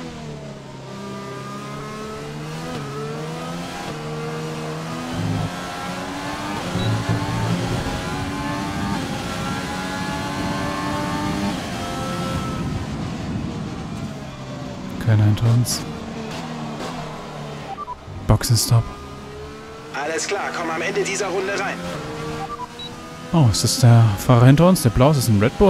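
A racing car engine whines at high revs, rising in pitch through each gear and dropping with each shift.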